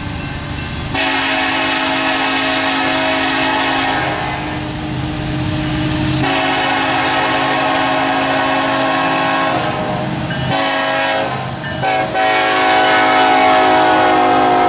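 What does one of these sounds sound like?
A train horn blasts loudly in long, repeated blows.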